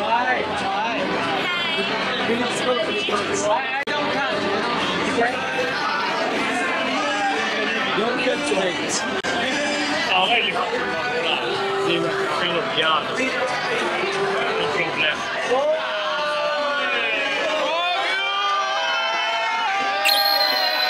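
A young man cheers and shouts excitedly.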